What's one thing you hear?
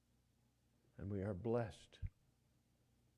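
An elderly man speaks slowly and expressively into a microphone, heard through an online call.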